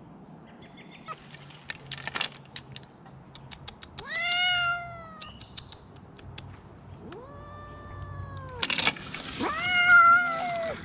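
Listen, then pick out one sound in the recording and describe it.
Branches rustle and knock as a pole pushes through them.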